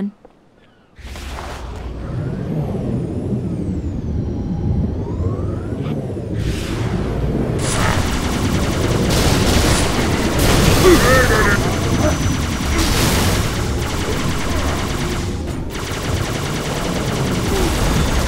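A hovering vehicle's engine hums and whines steadily.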